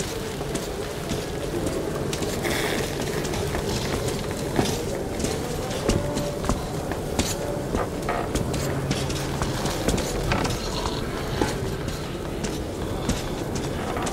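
Footsteps thud on wooden boards and metal stairs.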